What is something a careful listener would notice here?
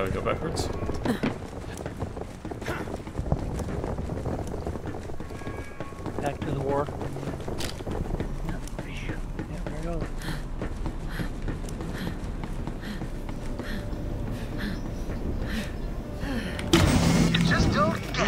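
Footsteps patter steadily on a hard floor.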